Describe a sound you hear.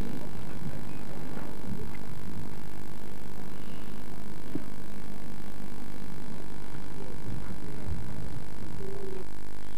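People chatter quietly nearby outdoors.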